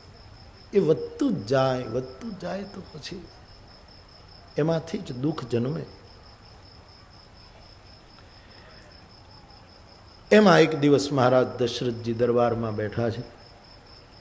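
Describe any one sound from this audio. An elderly man speaks expressively into a microphone, in bursts with long pauses.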